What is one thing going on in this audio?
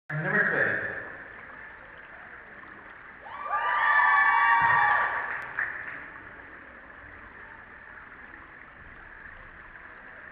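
Water laps gently in an echoing indoor pool.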